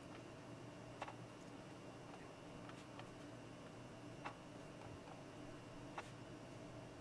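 A laptop touchpad clicks softly a few times.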